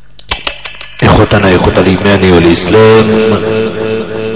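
A young man sings loudly and with feeling into a microphone.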